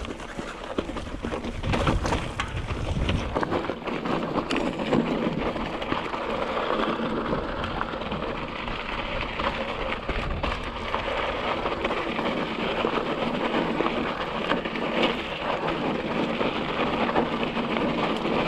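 Wind buffets past outdoors.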